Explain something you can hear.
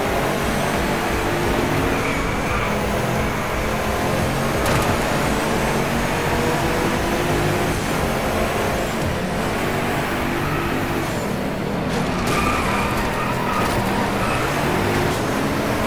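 Tyres hiss on the road.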